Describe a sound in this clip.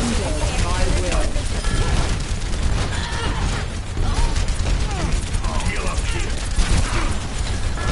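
Game explosions boom loudly.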